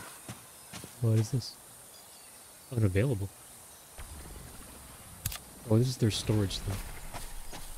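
A young man talks in short bursts close to a microphone.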